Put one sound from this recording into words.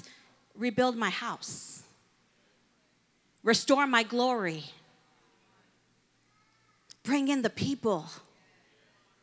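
A woman speaks into a microphone in short, animated phrases with pauses between them.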